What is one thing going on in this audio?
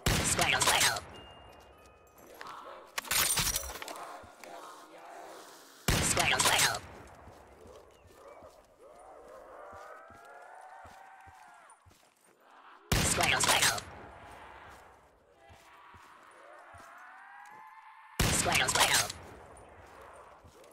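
A rifle bolt clicks as it is worked between shots.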